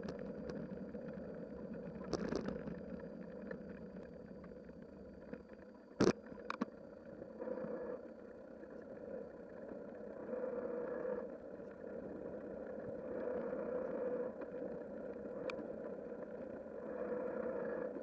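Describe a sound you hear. Tyres roll steadily over a paved road.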